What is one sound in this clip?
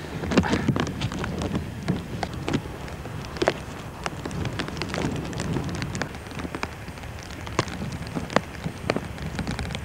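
Hands scrape and crumble clumps of damp earth close by.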